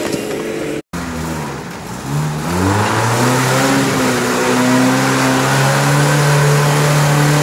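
A second engine rumbles and revs up as an off-road vehicle approaches.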